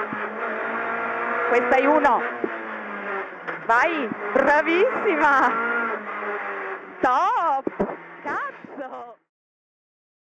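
A rally car engine roars close by, revving hard and dropping with each gear change.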